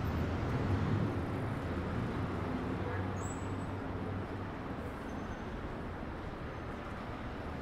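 Steady city traffic rumbles outdoors.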